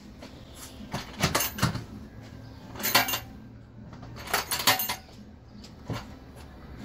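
A plastic lid thumps and scrapes as hands adjust it on a drum.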